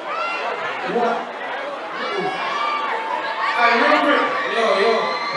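A crowd cheers and shouts close by.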